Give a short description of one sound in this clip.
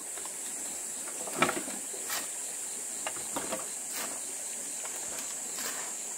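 A hoe scrapes soil into a wheelbarrow.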